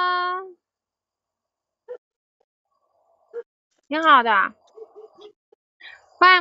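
A young woman speaks in a drawn-out, sing-song voice through an online call.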